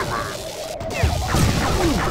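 An energy beam zaps and crackles.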